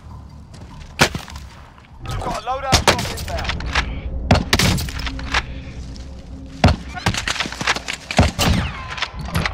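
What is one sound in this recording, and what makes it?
A rifle fires sharp single shots.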